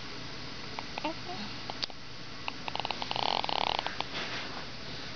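A newborn baby makes soft little grunts and squeaks close by.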